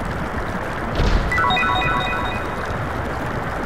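A short bright chime jingle plays.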